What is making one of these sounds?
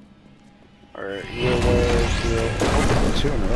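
Magic energy crackles and hums.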